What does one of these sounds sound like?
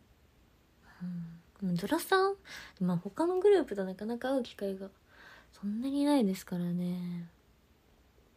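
A young woman speaks briefly close to a microphone.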